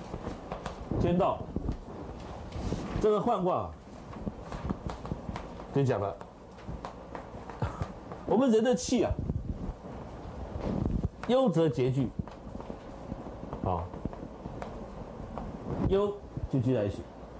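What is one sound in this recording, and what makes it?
A middle-aged man speaks in short, spaced phrases, in a room with a slight echo.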